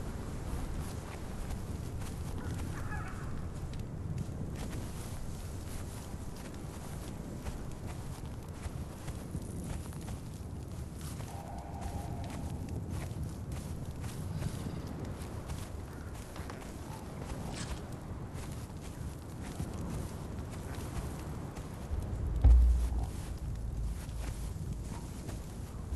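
Footsteps tread on soft ground.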